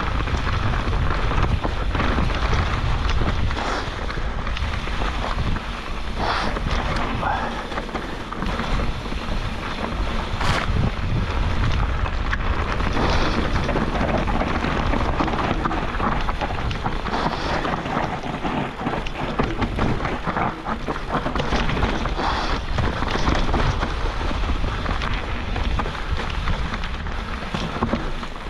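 Wind rushes loudly past, rumbling.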